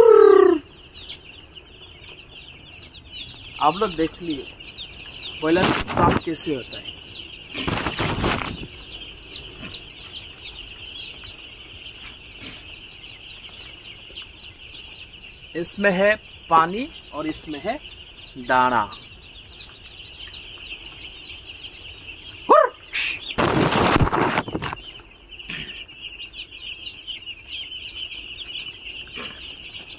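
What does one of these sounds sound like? Many chicks cheep and peep constantly, close by.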